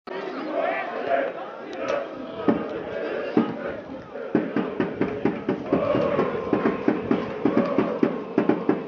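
A crowd of football fans chants in a stadium.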